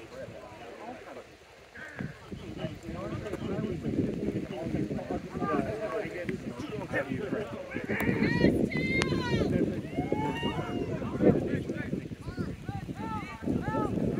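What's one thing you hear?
Several men on a sideline shout and cheer loudly outdoors.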